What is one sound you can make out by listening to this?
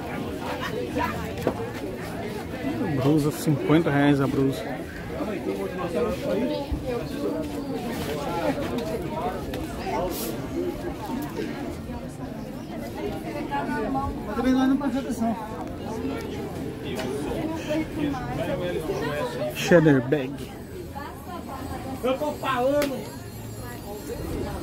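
A busy crowd murmurs and chatters outdoors.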